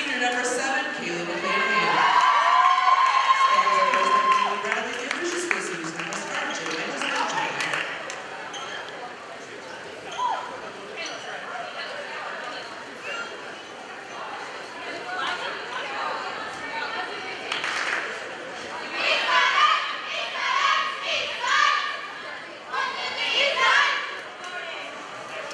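Young women cheer and shout loudly in a large echoing gym.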